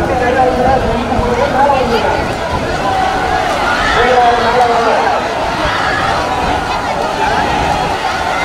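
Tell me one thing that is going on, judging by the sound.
A large crowd of men and women shouts and chatters loudly outdoors.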